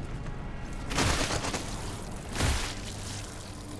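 Heavy boots stomp on a body with a wet crunch.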